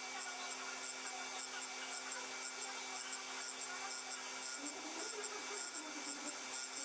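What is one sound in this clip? A tool and cutter grinder's cup wheel spins with a steady whine.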